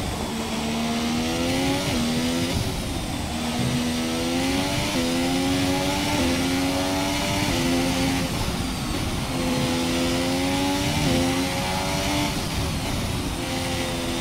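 A racing car engine whines loudly, rising in pitch and dropping sharply with each gear change.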